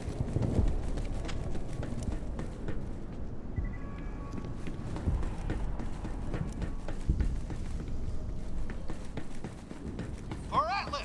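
Footsteps thud steadily on a hard metal floor.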